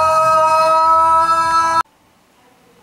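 A young man sings out a loud, high note close by.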